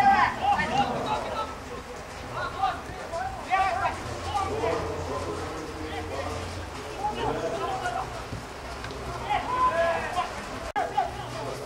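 Young men shout to each other outdoors on an open field.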